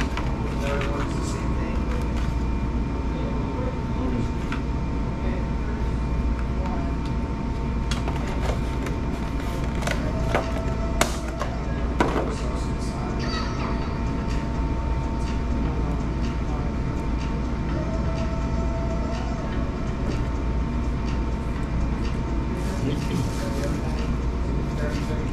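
A man slurps a drink through a straw.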